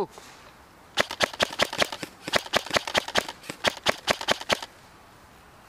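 An airsoft gun fires rapid bursts of sharp snapping shots.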